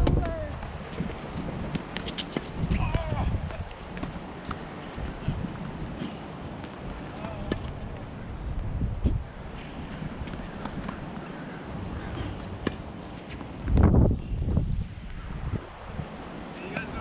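Sneakers scuff and squeak on a hard court.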